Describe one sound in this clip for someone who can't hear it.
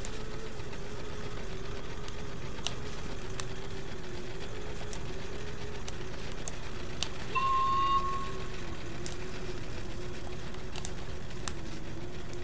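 A hanging lamp sways and creaks.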